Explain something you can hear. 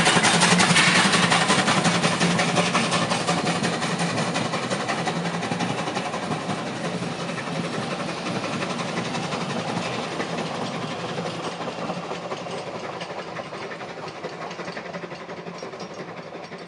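A steam locomotive chuffs as it pulls away.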